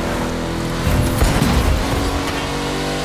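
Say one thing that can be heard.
A car crashes into another car with a thud.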